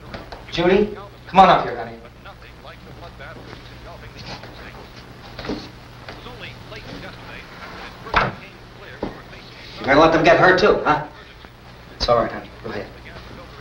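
A man speaks loudly and sharply nearby.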